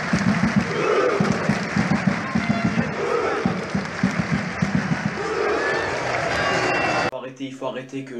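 A large crowd chants and sings loudly in an open stadium.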